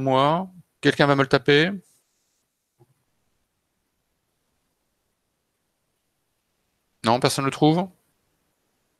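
A middle-aged man speaks calmly through a headset microphone over an online call, with long pauses.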